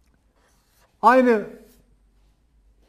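An elderly man speaks a short drawn-out word into a microphone.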